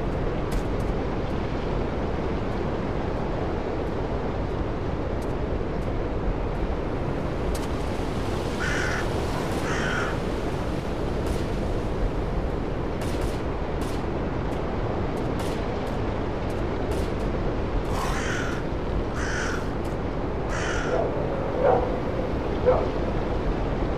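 Wind blows steadily through trees outdoors.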